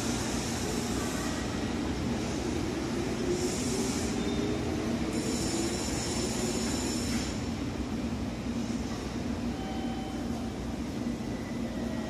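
A train rumbles as it rolls slowly closer along the tracks.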